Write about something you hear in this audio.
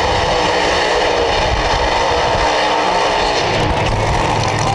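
A race car engine roars loudly and revs.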